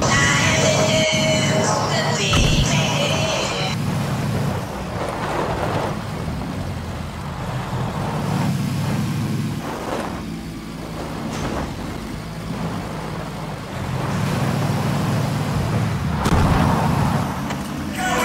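An engine rumbles and revs as a vehicle drives over rough ground.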